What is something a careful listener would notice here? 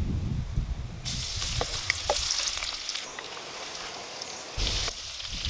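Oil sizzles in a hot wok.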